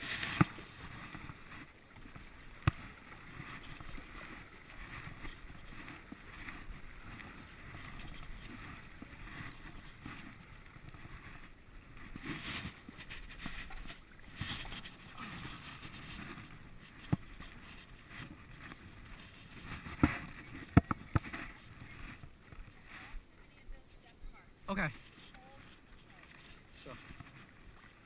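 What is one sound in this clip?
A paddle splashes and dips into calm water in steady strokes.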